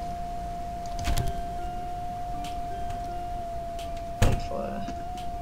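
A swinging door bangs open.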